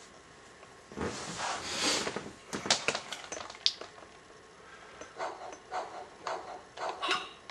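Game sound effects play from a television speaker.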